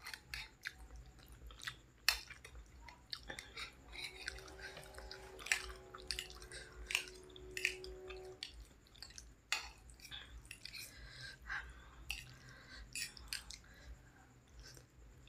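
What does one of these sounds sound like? A young woman chews and slurps noodles loudly, close to a microphone.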